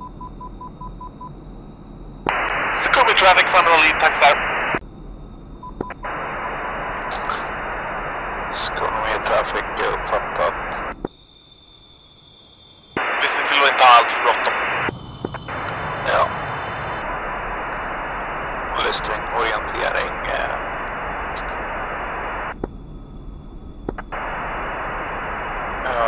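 A jet engine idles with a steady whine.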